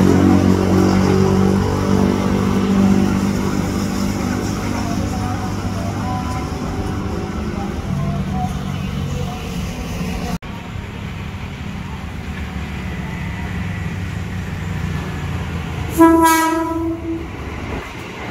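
An electric train rumbles as it approaches.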